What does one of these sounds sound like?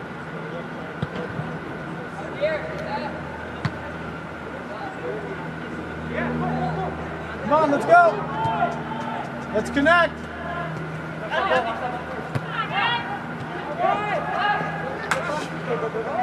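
A soccer ball thuds as it is kicked.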